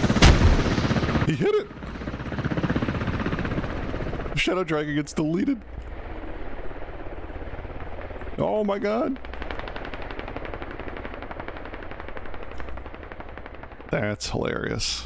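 A helicopter's rotor thuds steadily overhead.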